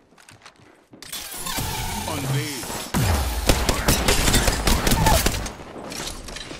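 Rapid gunfire rattles in bursts, loud and close.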